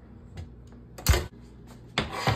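A baking dish clatters onto an oven rack.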